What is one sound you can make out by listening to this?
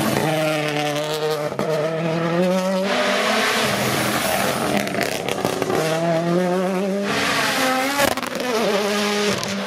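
A rally car engine roars loudly, revving hard through gear changes.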